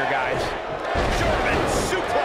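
A body slams heavily onto a wrestling mat with a thud.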